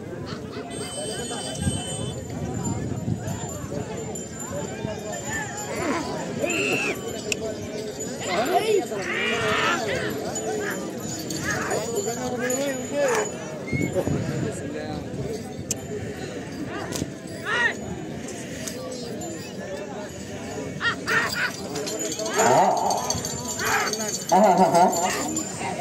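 A crowd of men and women chatters and shouts outdoors.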